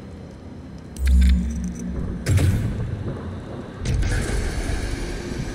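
Heavy metal machinery booms and clanks as it turns.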